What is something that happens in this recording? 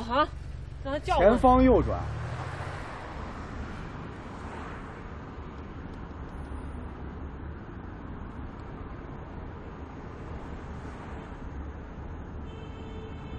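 A car engine hums low and steadily.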